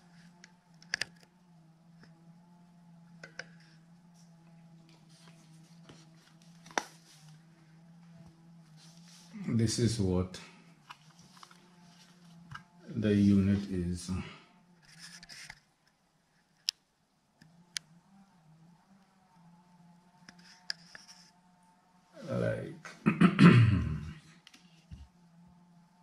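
A metal casing knocks and rattles as it is handled.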